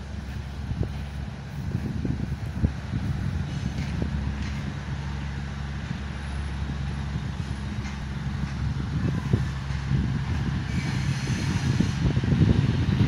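A train engine rumbles steadily as a train slowly approaches.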